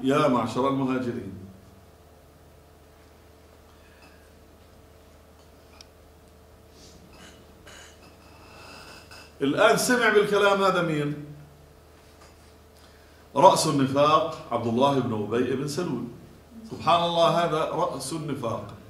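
A man speaks calmly into a nearby microphone, in bursts with pauses.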